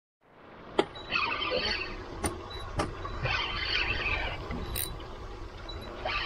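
A fishing reel whirs and clicks as it is cranked.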